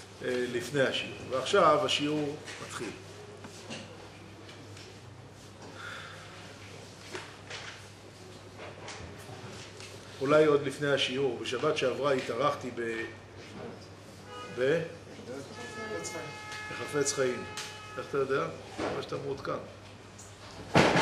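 A middle-aged man speaks calmly into a microphone, pausing now and then.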